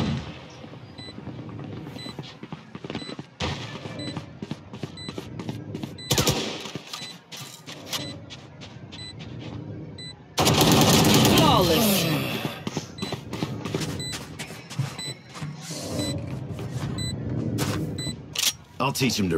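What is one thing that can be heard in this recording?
A device beeps steadily, the beeps coming faster and faster.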